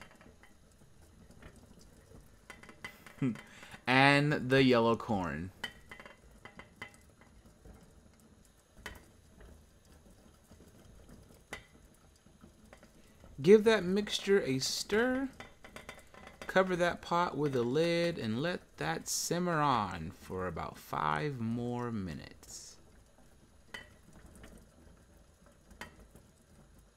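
A pot of liquid simmers and bubbles softly.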